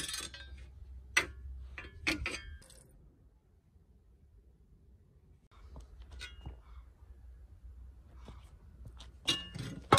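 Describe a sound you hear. A metal shovel head clanks and scrapes on hard ground.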